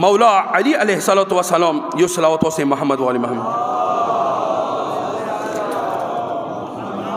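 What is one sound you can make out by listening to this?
A middle-aged man recites in a chanting voice through a microphone and loudspeakers, with a long echo.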